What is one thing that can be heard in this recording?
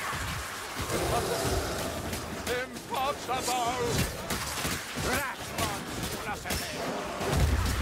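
Rat-like creatures squeal and shriek nearby.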